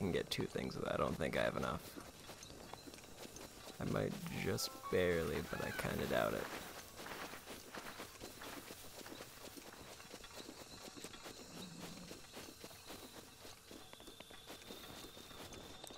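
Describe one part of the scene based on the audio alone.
Running footsteps patter on grass.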